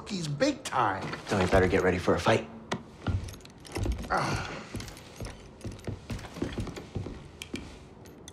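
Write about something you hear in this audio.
A creature speaks in a gravelly, gruff voice.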